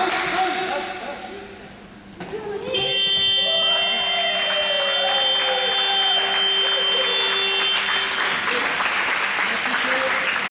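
A ball bounces on the floor in a large echoing hall.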